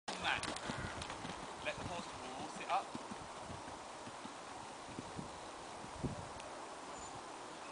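Hooves thud softly as a horse canters.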